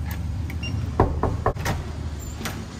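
A door lock beeps and clicks open.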